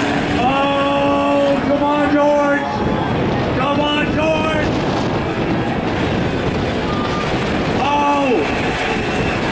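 Two car engines roar loudly as the cars accelerate hard, their pitch climbing and dropping with each gear change.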